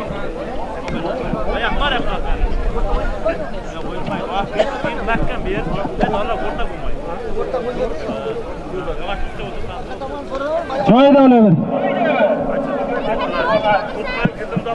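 A large crowd of men shouts and chatters outdoors.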